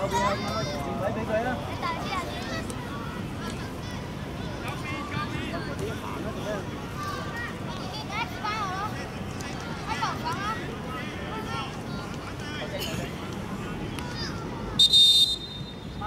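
Children shout and call out across an outdoor playing field.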